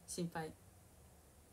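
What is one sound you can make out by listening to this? A young woman speaks briefly and softly close to a microphone.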